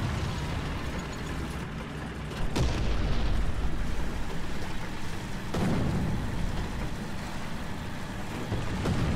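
Tank tracks clatter over grass.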